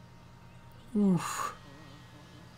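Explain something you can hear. A ghostly creature lets out a short, falling wail with a sharp burst of noise.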